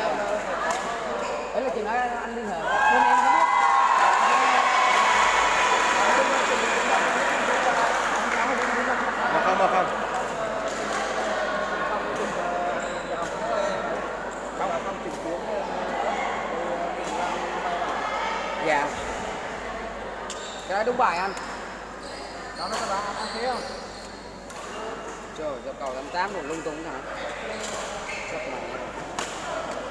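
A badminton racket strikes a shuttlecock with a sharp pop.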